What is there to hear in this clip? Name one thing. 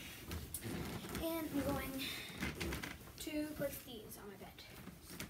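A young girl speaks briefly nearby.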